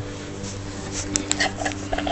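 A spoon scrapes and clinks against a metal can.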